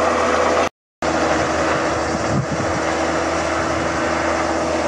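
A tractor engine idles nearby.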